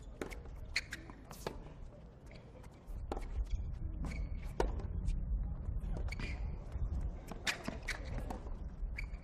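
Tennis shoes squeak and scuff on a hard court.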